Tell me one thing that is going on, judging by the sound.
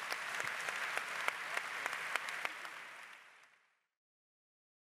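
A large audience applauds in a big echoing hall, then the applause fades out.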